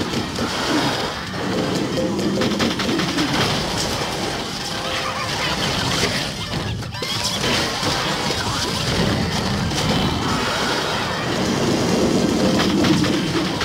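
Game zombies are blasted with bursts of beams and splats.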